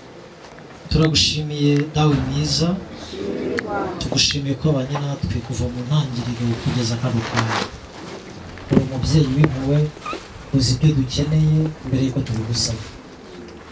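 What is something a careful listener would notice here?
A man speaks steadily into a microphone, heard through a loudspeaker.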